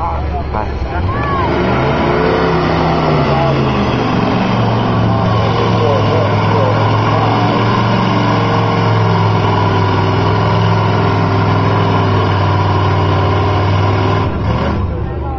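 A truck engine revs hard and roars steadily, then cuts back.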